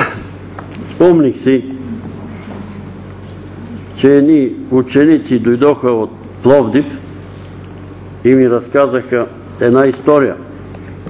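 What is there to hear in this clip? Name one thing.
An elderly man speaks loudly into a microphone, preaching with feeling in an echoing hall.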